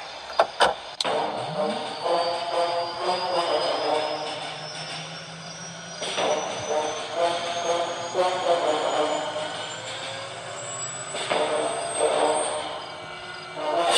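A helicopter engine starts up and whirs, rising steadily in pitch.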